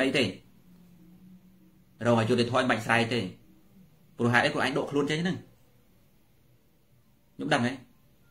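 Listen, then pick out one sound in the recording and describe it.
A man speaks calmly in short phrases, close to the microphone.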